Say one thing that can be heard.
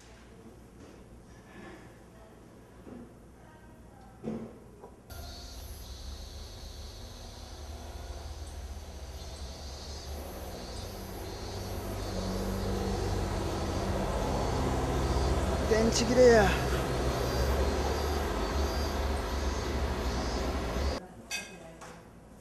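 A clock ticks quietly.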